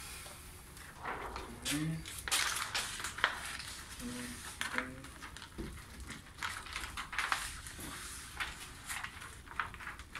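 A sheet of plastic tint film crinkles and rustles as it is handled.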